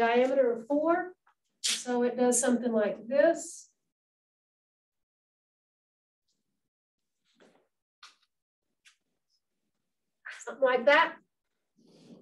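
A woman speaks calmly, as if teaching.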